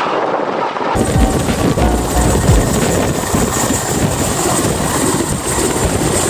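A helicopter's rotors chop heavily and deeply close by.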